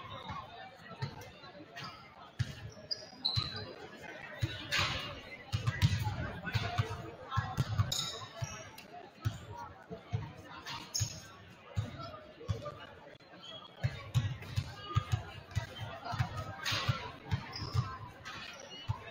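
Young women players call out to each other across an echoing gym.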